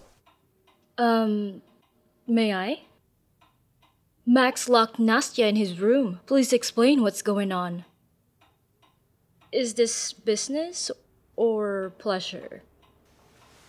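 A woman speaks calmly and firmly nearby.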